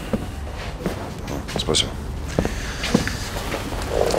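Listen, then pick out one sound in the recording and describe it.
Footsteps tread on a wooden floor.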